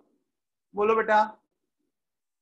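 A man speaks briefly through a microphone.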